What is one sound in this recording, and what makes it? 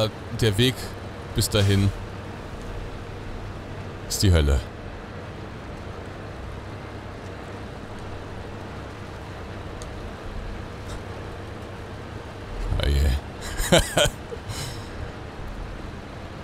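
A heavy truck engine rumbles steadily at low speed.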